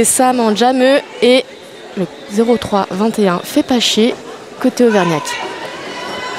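Several women shout loudly in a large echoing hall.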